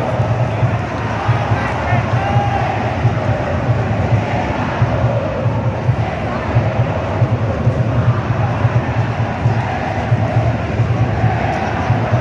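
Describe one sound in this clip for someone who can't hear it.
A large stadium crowd chants loudly and steadily.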